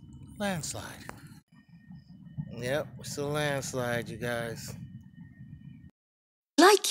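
A man speaks close up with animation.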